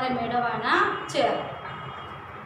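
A young woman speaks clearly, close by.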